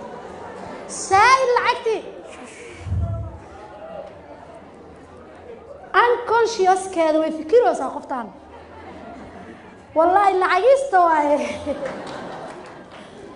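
A woman speaks with animation into a microphone, in bursts.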